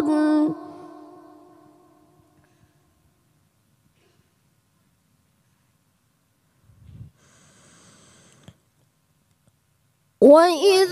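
A boy chants melodically into a microphone, with a lingering echo.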